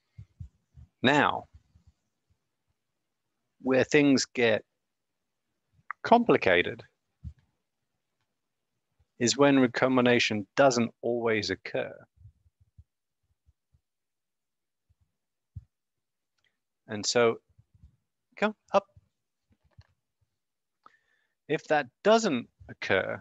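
A man speaks calmly over an online call, in bursts with pauses.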